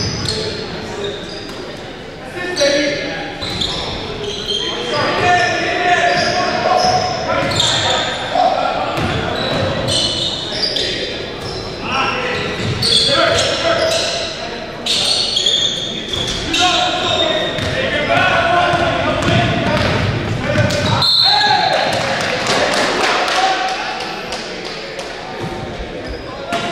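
Men shout and call out during play in a large echoing gym.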